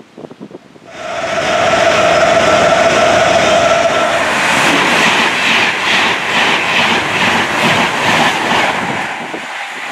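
A high-speed train rushes loudly past close by.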